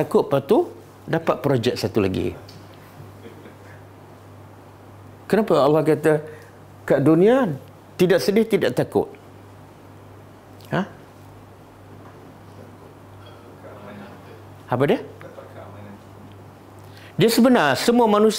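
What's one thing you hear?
An elderly man speaks calmly in bursts with long pauses, close to a microphone.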